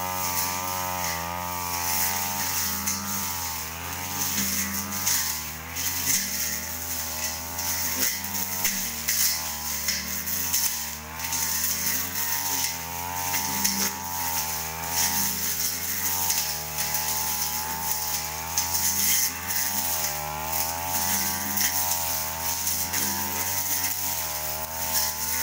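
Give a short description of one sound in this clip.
A brush cutter's line whips and swishes through weeds.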